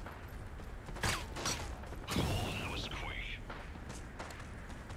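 Pistol shots crack sharply.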